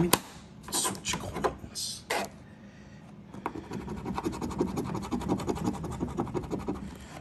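A coin scratches rapidly across paper.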